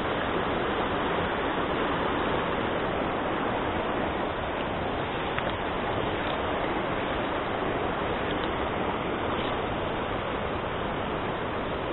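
A mountain stream rushes loudly over rocks nearby.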